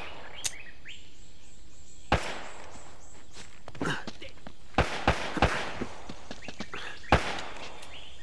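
A pistol fires single shots.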